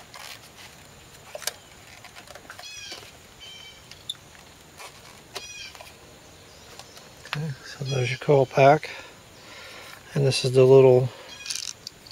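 Plastic engine parts click and rattle as they are pulled loose by hand.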